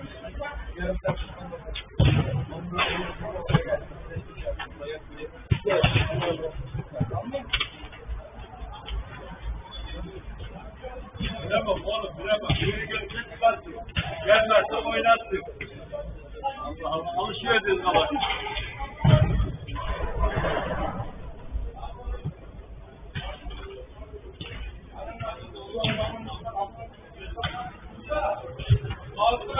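Men shout and call out to each other during play, heard from a distance.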